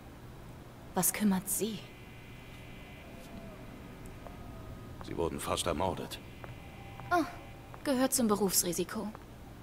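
A young woman answers, speaking with animation.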